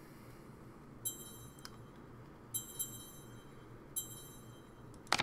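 Short menu selection chimes sound as options are clicked.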